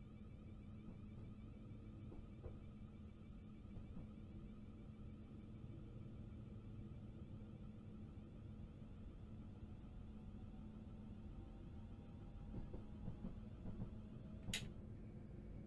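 An electric train motor hums steadily.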